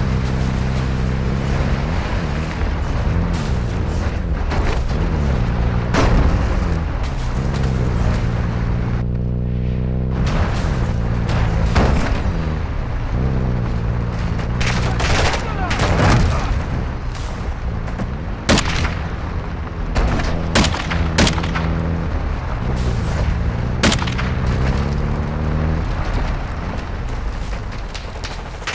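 An off-road vehicle engine hums and revs up and down as it drives.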